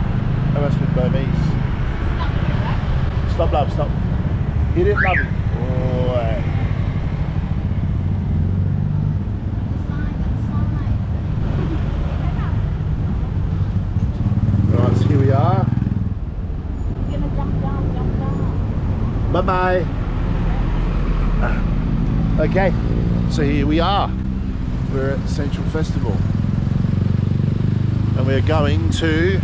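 An engine rumbles steadily as a vehicle rides through traffic.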